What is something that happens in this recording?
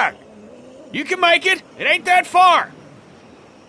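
An older man calls out encouragingly.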